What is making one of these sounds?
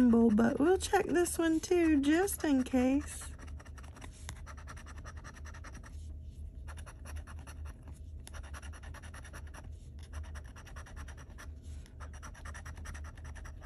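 A metal edge scrapes rapidly across a scratch card.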